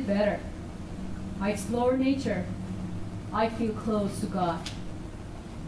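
A young woman speaks nearby in short phrases, with animation.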